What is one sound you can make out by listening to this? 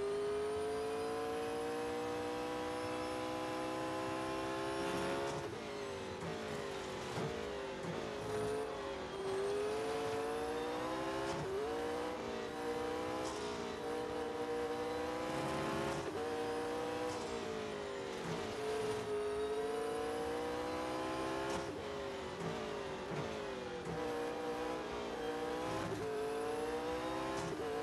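A racing car engine roars, its pitch climbing through the gears and dropping as it slows for corners.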